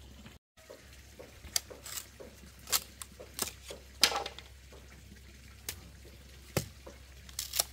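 Bamboo splits with a cracking sound.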